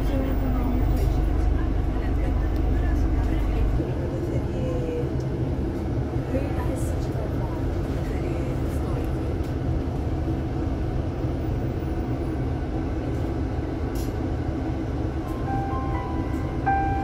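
City traffic hums along a busy road.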